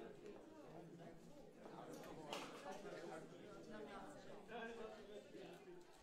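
A crowd of adults chatters in a hall.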